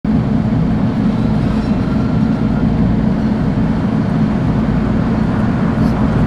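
A bus engine hums steadily at low pitch.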